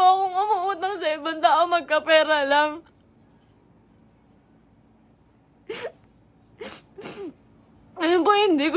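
A young woman sings in a high, wavering voice close to a microphone.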